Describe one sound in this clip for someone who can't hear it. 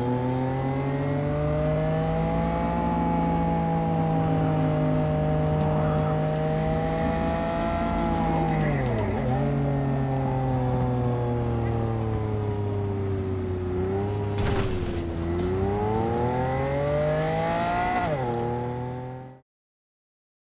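A car engine drones steadily, its pitch dipping and rising as it revs.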